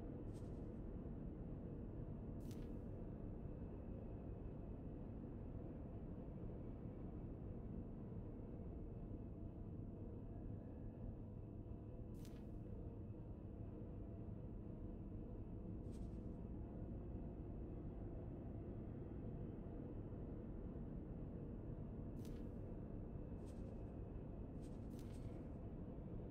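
Short soft clicks sound as menu options are picked.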